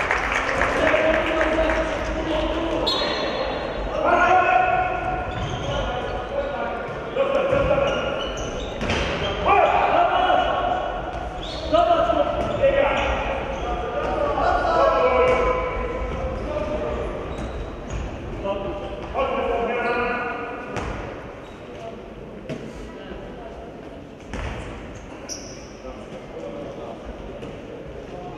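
A ball bounces on a hard floor in a large echoing hall.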